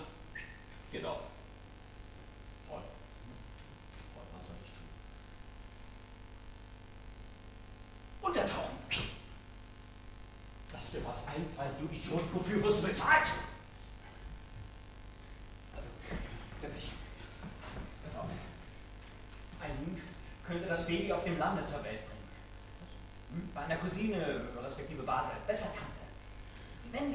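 A man speaks on a stage, heard from a distance in a hall.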